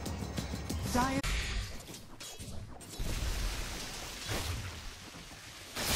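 Magic blasts and weapon strikes clash in a fierce fight.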